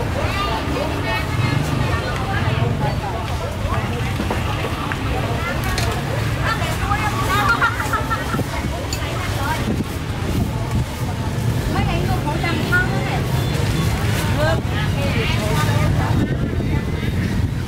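A busy market crowd chatters all around.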